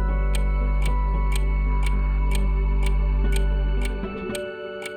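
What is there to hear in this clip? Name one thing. A clock ticks steadily.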